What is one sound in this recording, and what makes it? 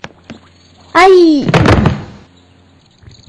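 A child falls to the ground with a heavy thud.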